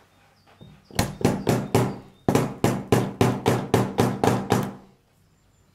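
A hammer taps rapidly on a metal lock.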